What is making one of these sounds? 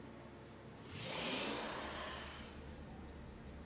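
A loud whoosh sweeps through and fades.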